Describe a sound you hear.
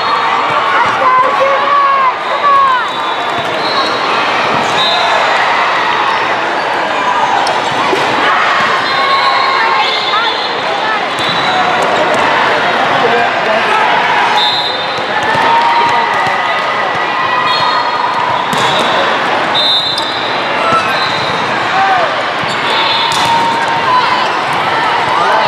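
Sneakers squeak sharply on a hard court, heard in a large echoing hall.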